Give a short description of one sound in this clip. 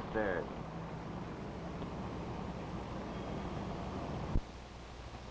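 Footsteps walk away on pavement.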